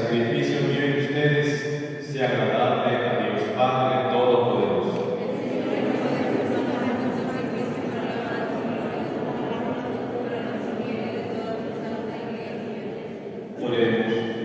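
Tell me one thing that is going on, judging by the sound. A man speaks steadily through a microphone in an echoing hall.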